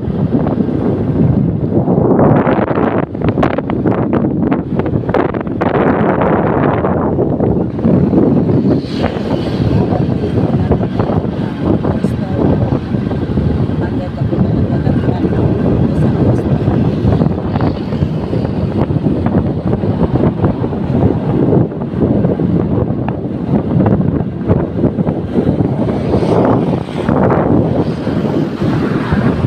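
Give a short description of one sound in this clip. Wind rushes and buffets loudly past a moving vehicle.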